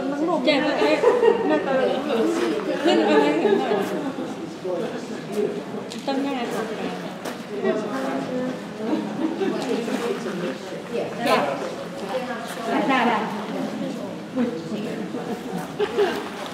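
An elderly woman speaks with animation close by.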